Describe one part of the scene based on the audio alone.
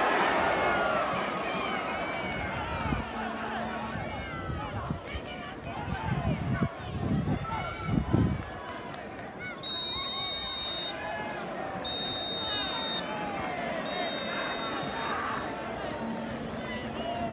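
Football players call out faintly across an open field.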